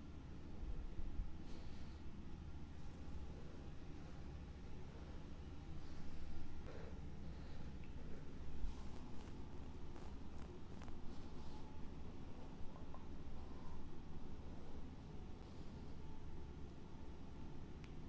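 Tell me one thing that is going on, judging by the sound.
Fingers softly rub against skin on a face.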